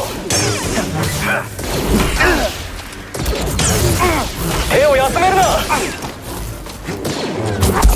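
Blaster bolts fire in quick bursts and crackle as they are deflected.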